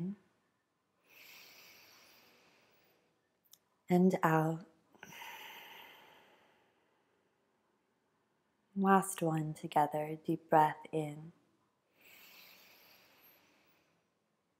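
A young woman breathes slowly and audibly in and out.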